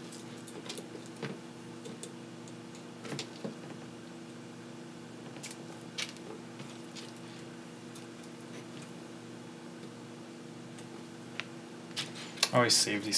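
Small metal parts click and tap on a work surface.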